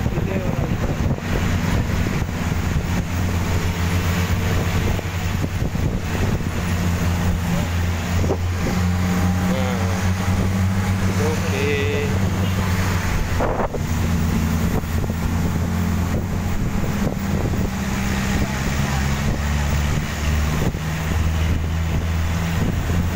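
An open-top jeep engine drones as the jeep drives along a paved road.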